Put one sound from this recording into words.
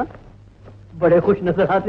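A man speaks loudly and with emotion.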